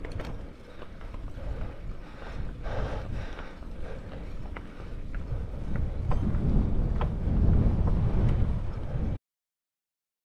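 Wind buffets the microphone outdoors with a low rumble.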